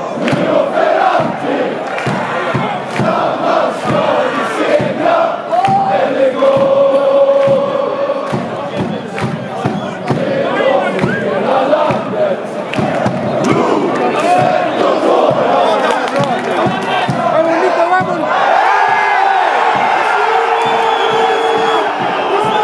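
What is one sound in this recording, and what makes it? A large stadium crowd chants and sings loudly all around.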